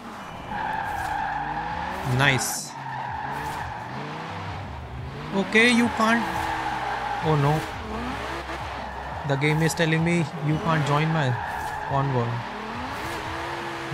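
Tyres screech while a car drifts.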